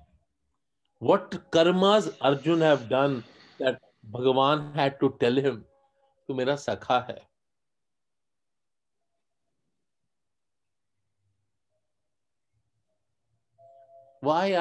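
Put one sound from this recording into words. A middle-aged man speaks with animation close to the microphone, in short bursts with pauses.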